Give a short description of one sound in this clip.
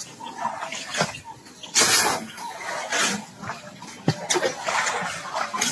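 Elephants splash and slurp water as they drink.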